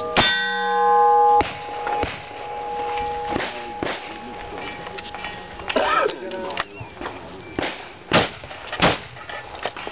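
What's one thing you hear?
Gunshots crack loudly outdoors, one after another.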